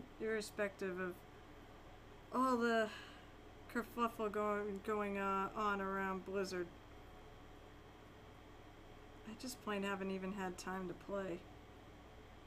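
A young woman talks calmly into a microphone, close by.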